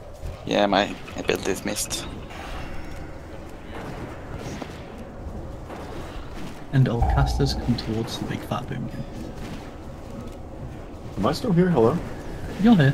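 Magic spells crackle and whoosh in a busy fight.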